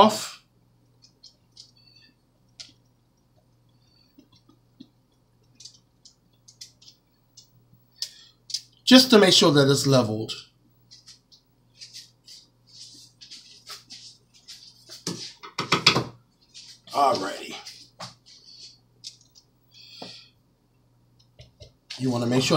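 A knife scrapes softly across a cake layer.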